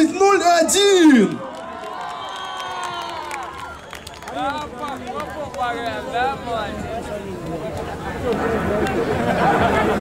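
A band plays with saxophones and guitars through loudspeakers.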